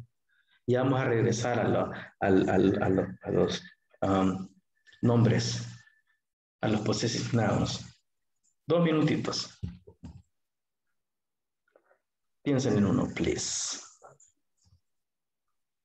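A man speaks with animation over an online call with a headset microphone.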